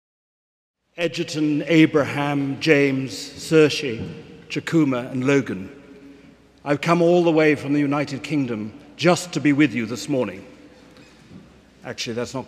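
An elderly man preaches calmly through a microphone in a large echoing hall.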